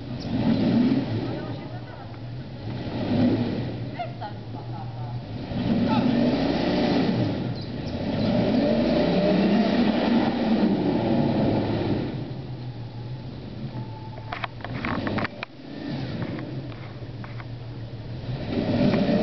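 An engine revs hard and strains, rising and falling.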